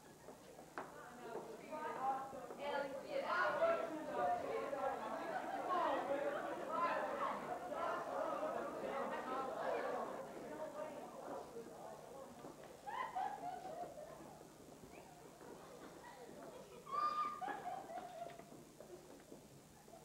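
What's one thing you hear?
A chorus of men and women sings, heard from a distance in a large hall.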